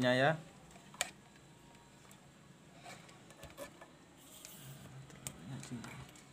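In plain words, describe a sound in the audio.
Small plastic parts click and rattle as wires are handled.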